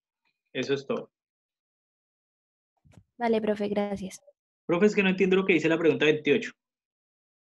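A young man talks calmly through an online call.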